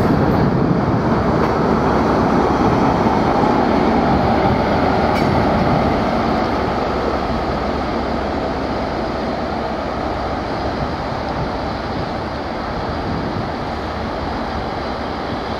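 A diesel locomotive engine roars as it passes and slowly fades.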